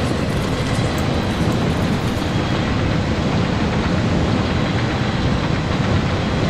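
A large fire roars steadily.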